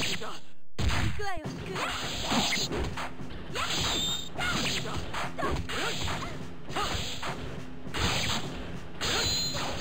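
Game fighters shout and yell during attacks.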